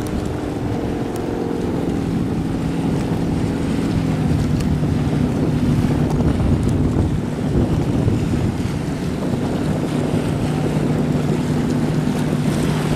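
A jet ski engine hums steadily, rising and falling as it moves across the water.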